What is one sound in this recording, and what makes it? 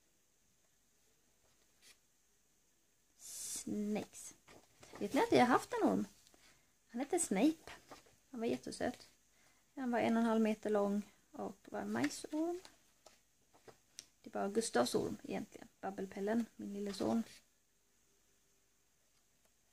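Paper pages rustle as a book's pages are turned.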